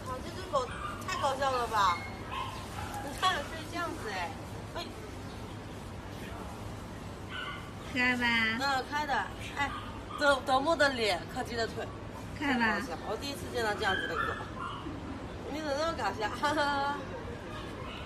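A young woman talks softly and playfully close by.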